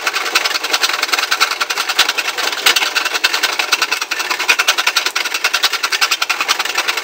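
A grinding wheel scrapes harshly against metal.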